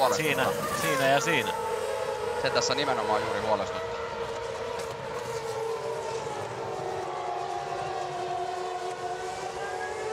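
A racing car engine screams at high pitch as the car speeds past.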